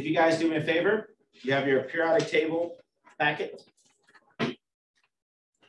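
A man lectures calmly through a microphone.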